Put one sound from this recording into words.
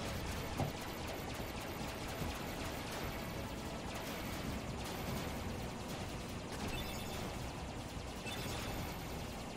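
Explosions burst in a video game.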